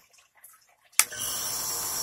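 A switch clicks.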